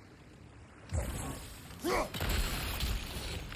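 A magical burst crackles and whooshes.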